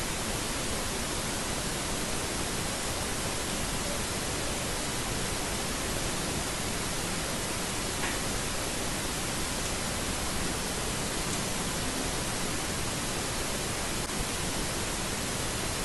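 A thin blade scrapes and cuts soft soap up close.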